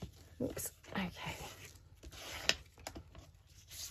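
A sponge rubs across paper with a soft scrape.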